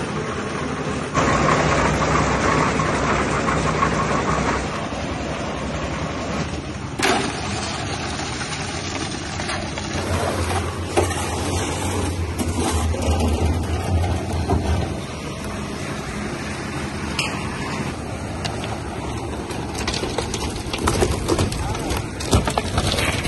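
A concrete mixer drum churns and rattles with a steady engine drone.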